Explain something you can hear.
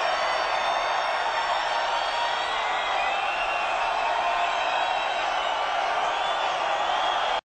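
An electric guitar rings out through loud speakers.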